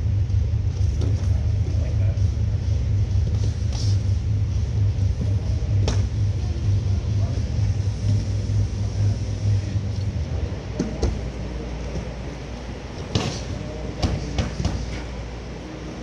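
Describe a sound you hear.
Punches and kicks thud against pads in a large echoing hall.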